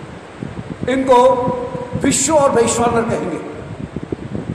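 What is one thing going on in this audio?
An elderly man speaks close to a microphone in a drawn-out, sing-song voice.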